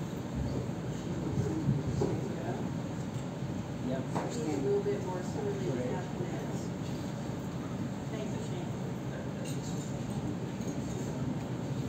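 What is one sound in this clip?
A man speaks into a microphone through loudspeakers.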